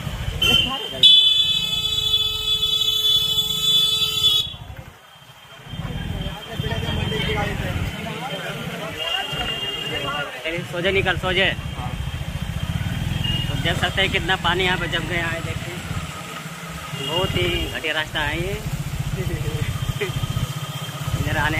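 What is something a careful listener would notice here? A motorbike engine hums steadily while riding.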